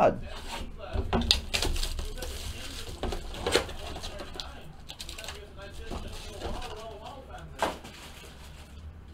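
A cardboard box taps and scrapes on a table.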